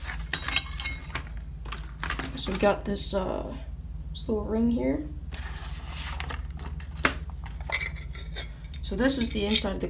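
Cardboard rustles and crinkles as it is handled.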